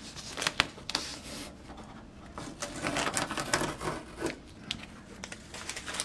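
Masking tape crackles and rips as it is peeled off a surface.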